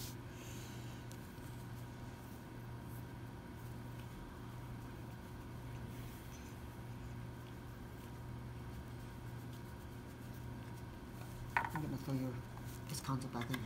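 Playing cards rustle in a hand.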